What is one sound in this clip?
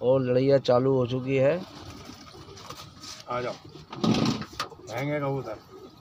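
Pigeon wings flap and clatter as a flock flies close by.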